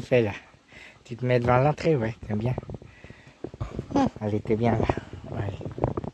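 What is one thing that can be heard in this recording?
A dog pants softly.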